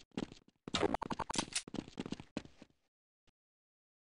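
A pistol is drawn with metallic clicks.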